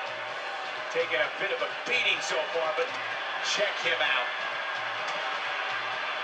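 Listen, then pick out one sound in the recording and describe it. Wrestlers thud and slam against each other on a television.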